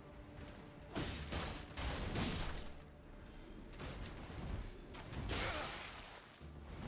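Metal weapons clash and swish in a fight.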